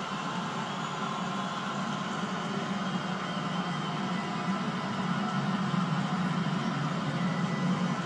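A large stadium crowd cheers and sings loudly through a television speaker.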